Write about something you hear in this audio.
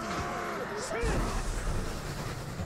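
A deep explosion booms.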